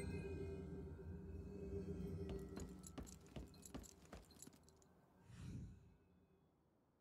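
Fantasy battle effects crash and ring with rapid bursts, then die away.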